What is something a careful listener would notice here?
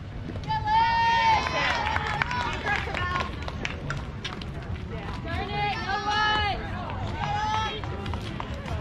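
Young girls shout and cheer loudly outdoors.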